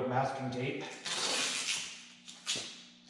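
Tape rips as it is pulled off a roll.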